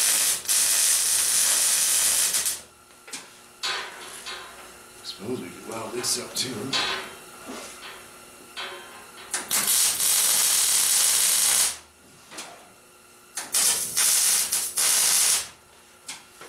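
An arc welder crackles and hisses in loud bursts.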